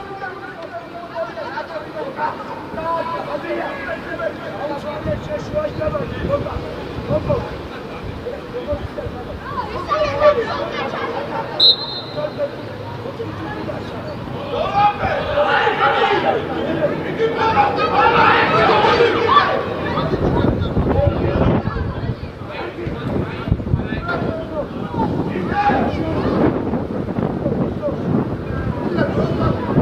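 Young players shout and call out across an open pitch outdoors.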